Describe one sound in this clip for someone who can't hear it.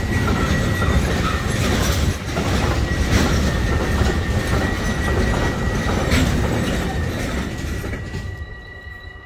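A freight train rumbles and clatters past close by, then fades away.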